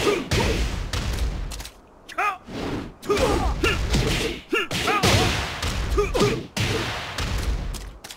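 Punches and kicks land with heavy, booming thuds.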